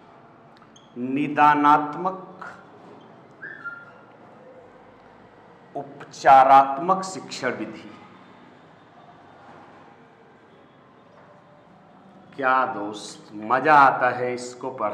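A middle-aged man speaks calmly in bursts, close by.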